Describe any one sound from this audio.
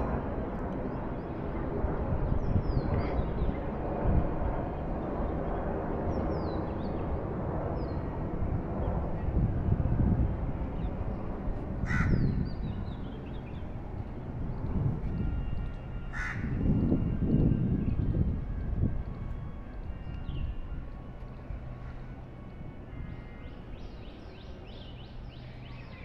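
Wind rumbles and gusts outdoors, easing off near the end.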